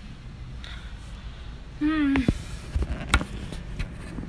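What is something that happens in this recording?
A phone knocks and rustles as it is handled close by.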